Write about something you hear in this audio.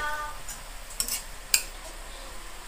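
A spatula clinks against a frying pan.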